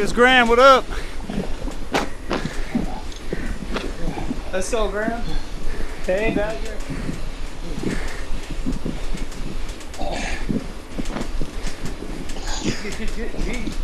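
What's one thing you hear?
A man talks casually into a nearby microphone.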